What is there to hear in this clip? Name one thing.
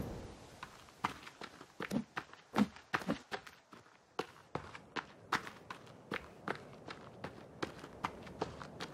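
Footsteps crunch through grass at a steady walking pace.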